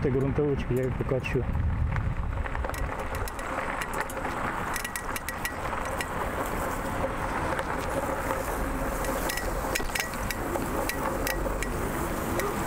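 Wind rushes steadily outdoors.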